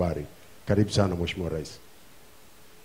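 A man speaks formally into a microphone.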